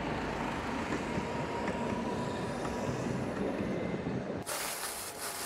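A tram rumbles past on its rails.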